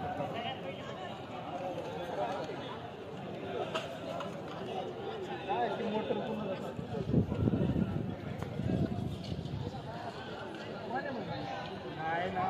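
A large outdoor crowd chatters and calls out all around.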